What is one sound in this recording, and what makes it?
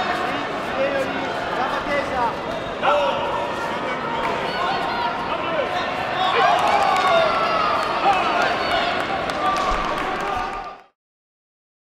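A crowd of spectators cheers and shouts loudly in a large echoing hall.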